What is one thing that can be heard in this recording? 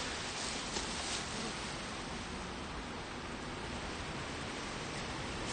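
Wind rustles through tall grass outdoors.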